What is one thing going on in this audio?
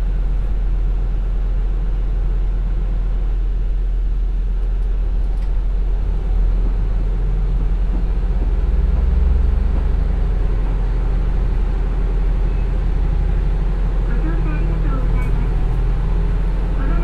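A diesel train engine rumbles steadily and swells louder as the train pulls away.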